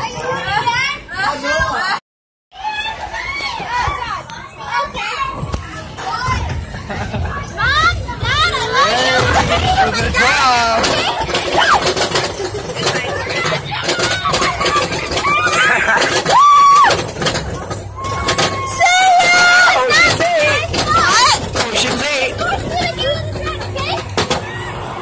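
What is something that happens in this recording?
Young riders scream and cheer excitedly on a roller coaster.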